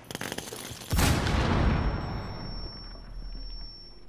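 A grenade explodes with a loud boom that echoes away.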